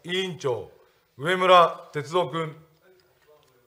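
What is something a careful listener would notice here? An elderly man speaks briefly and formally into a microphone.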